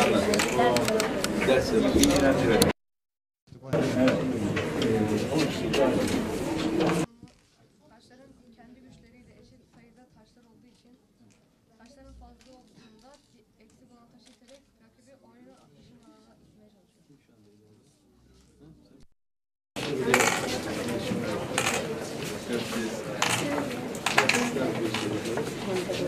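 A crowd of men and children chatter in a room.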